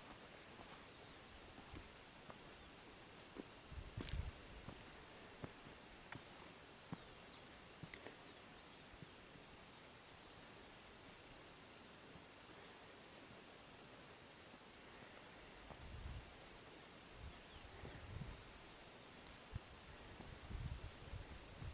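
Footsteps crunch on a grassy hillside path.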